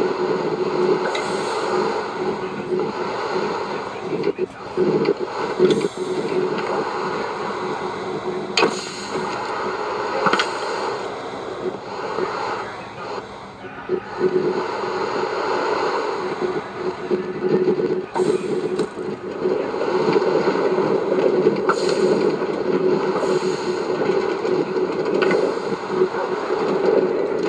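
A minecart rolls and rattles steadily along rails.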